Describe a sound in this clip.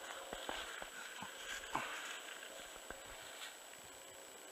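Dry grass stalks crackle and snow crunches underfoot.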